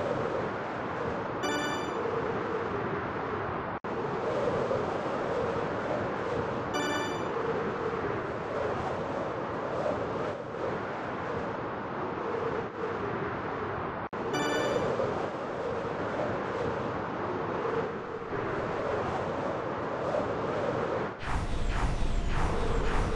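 Wind rushes steadily past during fast flight.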